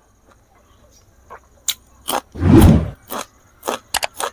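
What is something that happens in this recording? A man bites and crunches a crisp raw vegetable close to a microphone.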